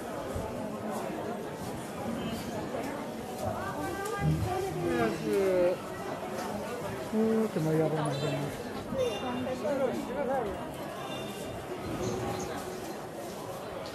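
Voices of a crowd chatter all around outdoors.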